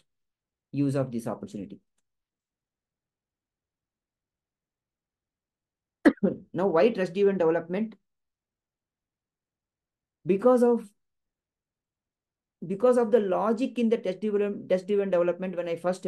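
A man talks calmly through an online call, in bursts with pauses.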